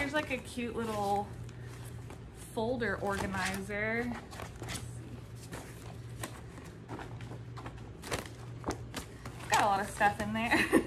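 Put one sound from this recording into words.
Plastic folders rustle and tap as they are handled.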